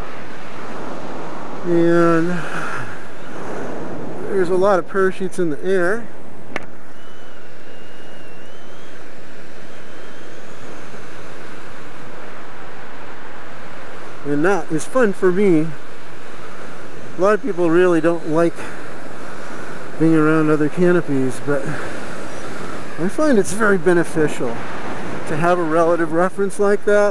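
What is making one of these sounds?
Wind rushes steadily past outdoors.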